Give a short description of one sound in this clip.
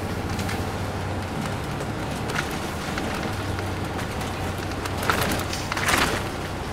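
The bus rattles and creaks over the road.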